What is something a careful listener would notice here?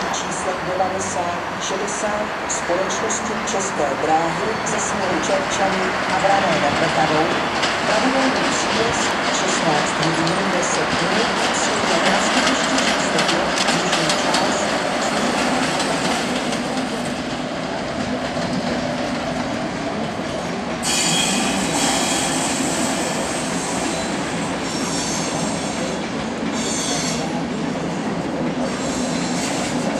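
A train rumbles along the tracks nearby.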